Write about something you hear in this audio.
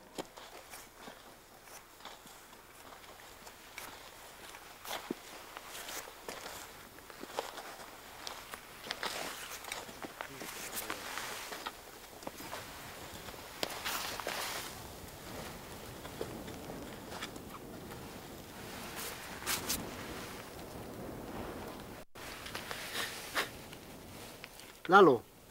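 Footsteps crunch on dry gravel outdoors.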